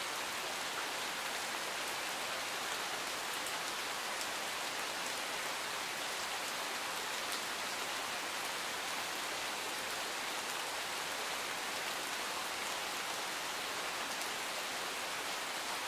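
Steady rain patters on leaves and gravel outdoors.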